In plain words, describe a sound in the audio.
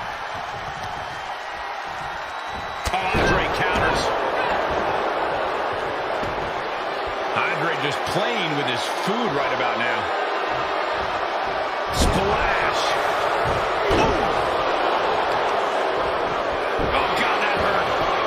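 An arena crowd cheers and roars.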